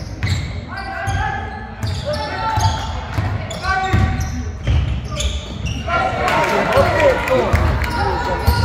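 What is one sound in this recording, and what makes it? A basketball bounces on the court with dull thuds.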